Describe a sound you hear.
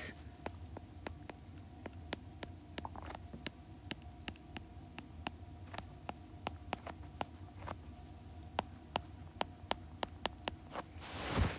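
A stylus taps and clicks on a tablet's glass.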